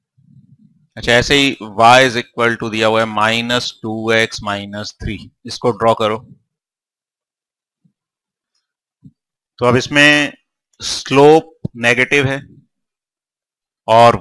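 A man lectures calmly through a clip-on microphone.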